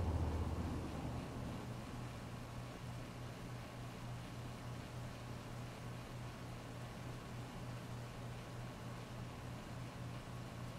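Heavy rain pours steadily onto a wet street.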